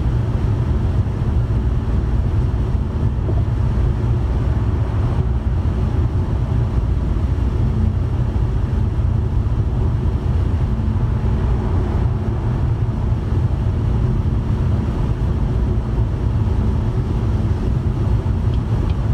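Wind rushes against a moving car.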